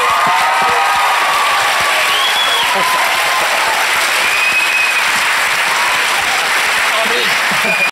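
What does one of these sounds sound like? Hands clap loudly in applause.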